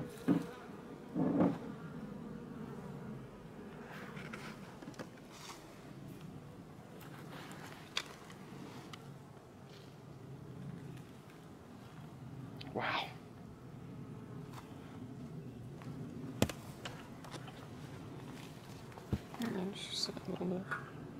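Honeybees buzz in a dense hum around a hive.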